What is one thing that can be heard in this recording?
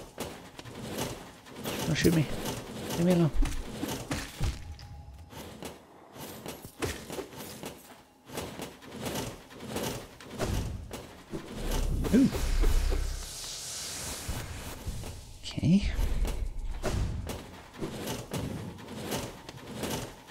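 Sharp sword slashes swish in quick bursts.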